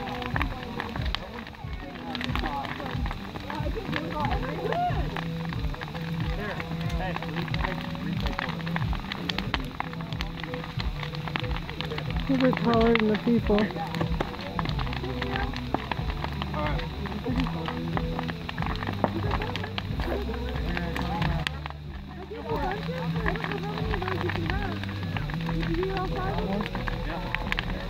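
A large bonfire roars and crackles with sharp pops.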